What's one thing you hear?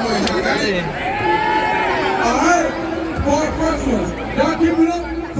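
Several young men sing together into microphones, heard through loudspeakers outdoors.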